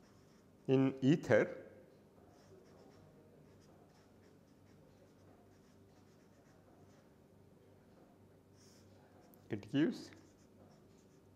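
A felt-tip marker squeaks and scratches softly on paper.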